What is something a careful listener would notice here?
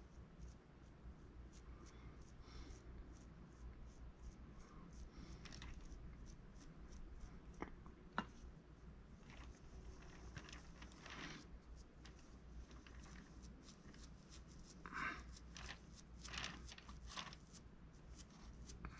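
A brush scratches softly on clay.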